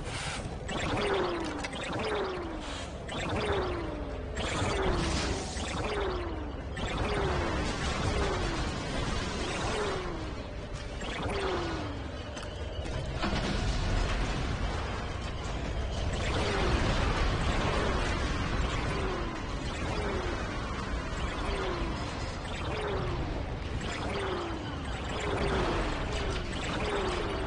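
Blaster shots fire in quick, repeated bursts with falling zaps.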